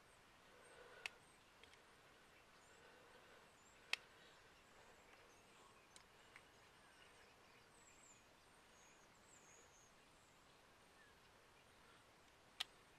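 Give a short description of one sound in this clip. Small metal parts click and clink sharply.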